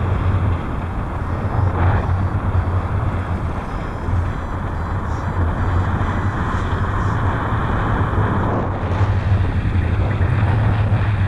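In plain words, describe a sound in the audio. Strong wind rushes and buffets loudly against a microphone.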